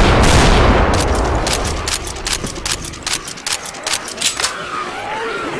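Shotgun shells click into a gun one after another.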